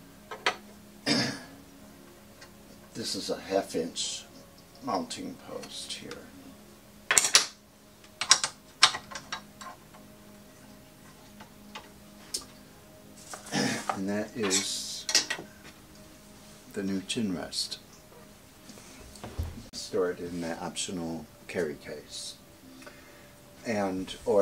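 An elderly man speaks calmly nearby, explaining.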